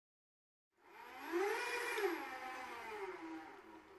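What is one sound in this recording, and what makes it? A motorised rope winch whirs and hums.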